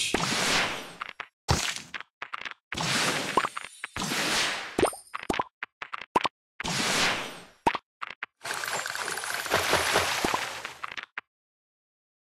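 Chimes and popping effects from a mobile puzzle game sound as candies clear.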